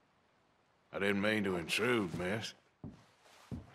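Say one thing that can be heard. A man answers in a low, gruff voice, close by.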